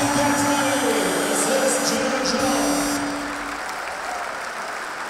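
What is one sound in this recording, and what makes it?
A crowd cheers and roars in a large echoing hall.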